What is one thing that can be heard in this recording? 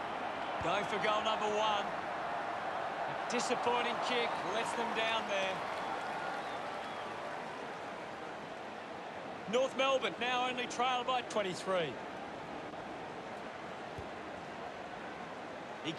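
A large crowd murmurs and roars steadily in a big open stadium.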